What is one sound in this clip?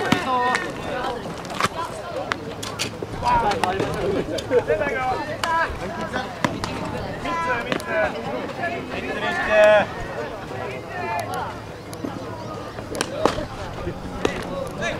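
Young players shout and call out outdoors.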